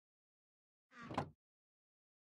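A wooden chest lid closes with a thud.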